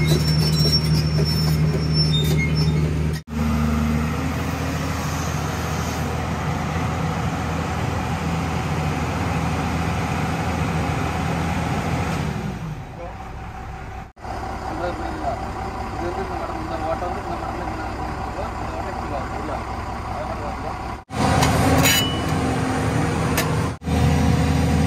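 A heavy diesel engine idles with a steady, low rumble close by.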